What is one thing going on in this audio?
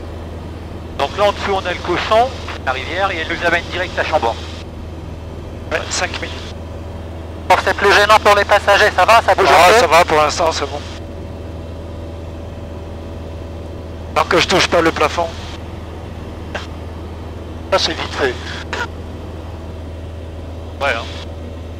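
A young man talks with animation through a headset intercom.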